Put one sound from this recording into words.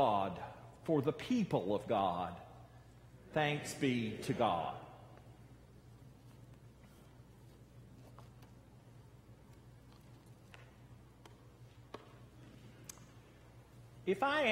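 A man reads aloud calmly through a microphone in a large echoing hall.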